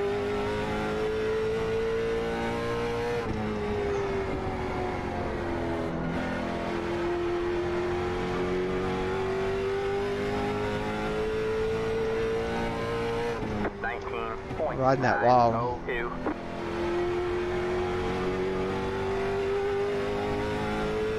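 A racing car engine drones steadily, rising and falling in pitch with gear changes.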